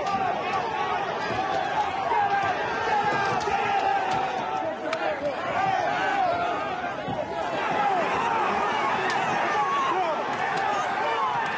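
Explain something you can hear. Men yell and scuffle at close range.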